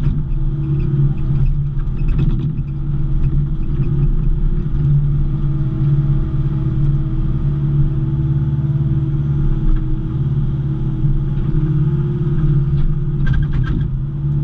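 A diesel engine rumbles steadily up close.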